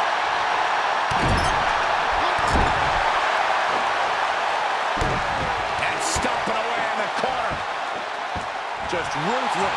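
Punches land with sharp smacks.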